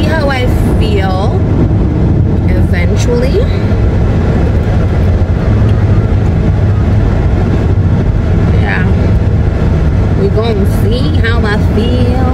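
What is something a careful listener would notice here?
A car engine and road noise rumble steadily.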